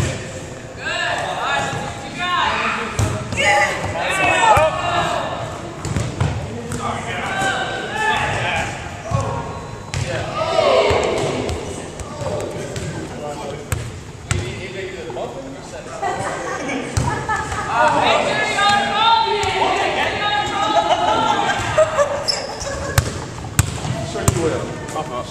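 Adult men talk and call out nearby in a large echoing hall.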